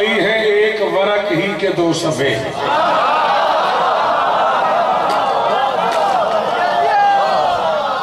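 A man recites loudly and with emotion through a microphone in an echoing hall.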